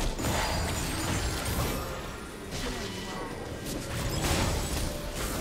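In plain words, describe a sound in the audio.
Magic spells burst and crackle in a fast fight.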